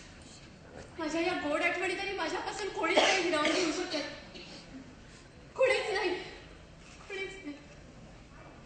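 A young woman speaks and sobs with deep emotion on a stage.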